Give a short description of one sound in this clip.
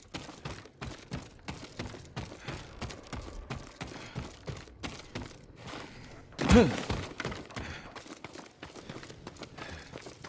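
Footsteps run quickly over wooden floorboards.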